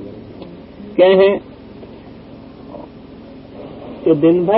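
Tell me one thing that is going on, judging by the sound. An elderly man speaks into a microphone in short, drawn-out bursts.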